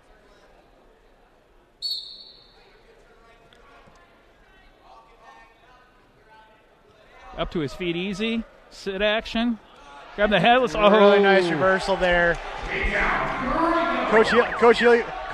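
Bodies thump and scuff on a wrestling mat.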